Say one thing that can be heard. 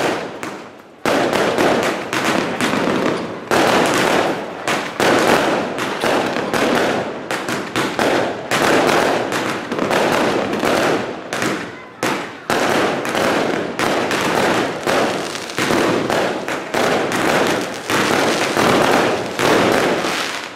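Fireworks bang and crackle outdoors, one after another.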